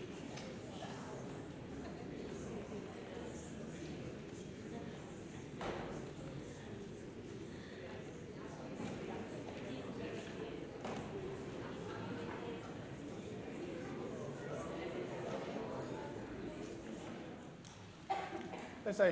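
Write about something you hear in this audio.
A crowd of men and women chat and murmur in a large echoing hall.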